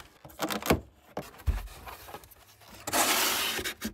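Cardboard flaps scrape and thump as a box is opened.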